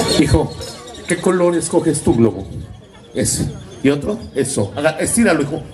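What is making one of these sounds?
A man speaks with animation through a microphone over loudspeakers.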